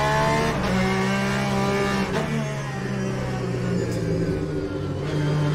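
A racing car engine roars loudly, its pitch shifting as the gears change down.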